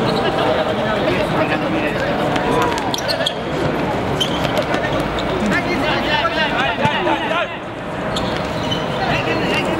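Players shout to each other across the court.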